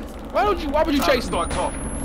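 A pistol is reloaded with a metallic click.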